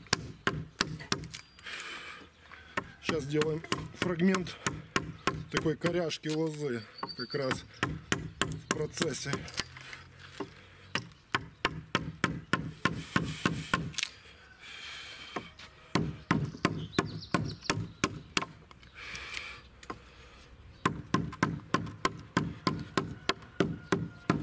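A wooden mallet knocks steadily on a chisel cutting into wood.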